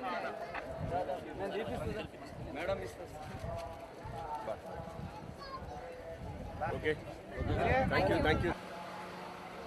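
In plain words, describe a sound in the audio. A crowd of people chatter and call out nearby outdoors.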